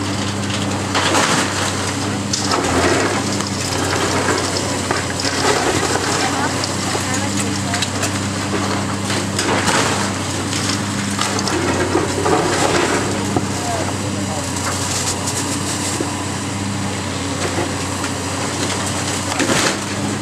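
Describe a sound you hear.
Concrete and rubble crash and clatter as a building is torn down.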